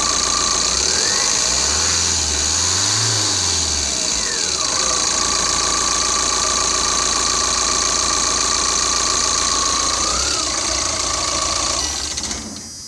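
An engine idles steadily with a whining hum.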